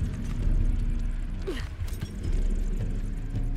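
Feet thud onto wooden planks.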